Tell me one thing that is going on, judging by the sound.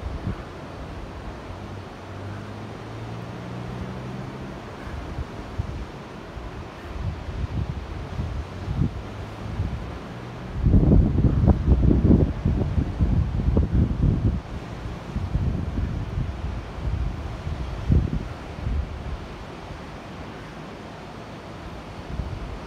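Waves wash against the shore below.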